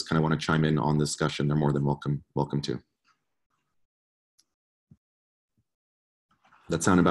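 A man speaks calmly and close to a microphone, as on an online call.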